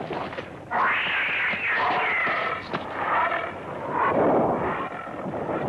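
Large wings flap heavily.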